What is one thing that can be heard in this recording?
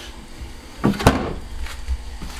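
A toilet lid clunks shut.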